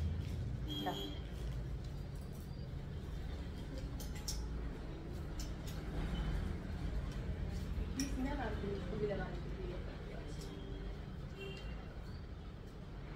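Fabric rustles as garments are handled.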